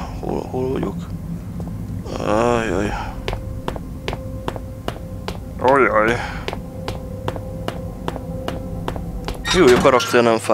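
Footsteps tap steadily on a hard floor in an echoing tunnel.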